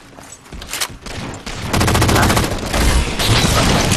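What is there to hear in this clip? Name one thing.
An explosion bursts with a loud boom.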